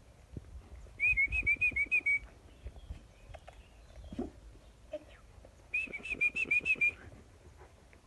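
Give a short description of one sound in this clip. Puppies whine and squeal in high, quavering bursts.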